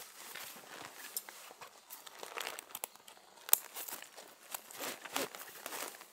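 A plastic buckle clicks.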